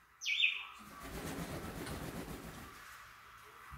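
Wings flap briefly as a parrot flutters.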